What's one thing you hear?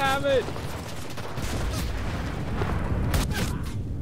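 Gunfire cracks nearby.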